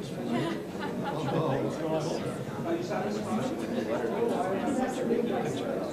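An elderly man speaks with a laugh nearby.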